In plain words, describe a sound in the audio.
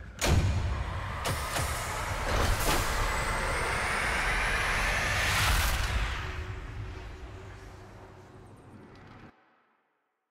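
A machine whirs and rises in pitch as it powers up.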